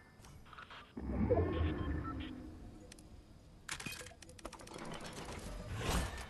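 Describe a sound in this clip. Game menu sounds chime and click.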